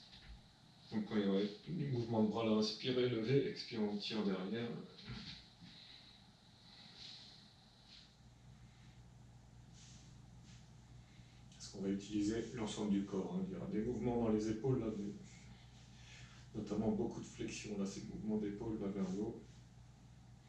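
A young man speaks calmly, close by, in short bursts.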